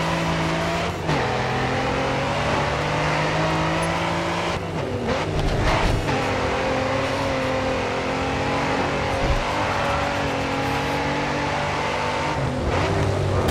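A sports car engine drops in pitch as it shifts up a gear.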